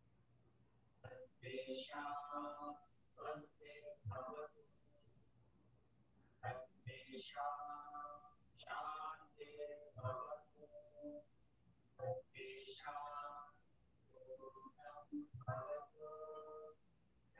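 A man speaks calmly and slowly, heard through an online call.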